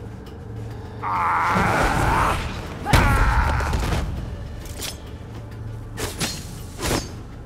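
Swords swish through the air in a fight.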